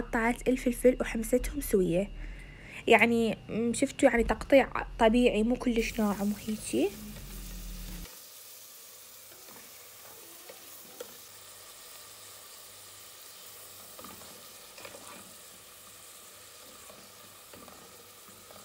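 A wooden spoon scrapes and stirs vegetables in a metal pot.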